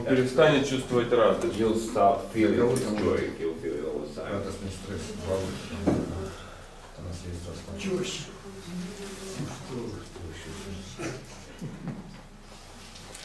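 An elderly man talks calmly in a small echoing room.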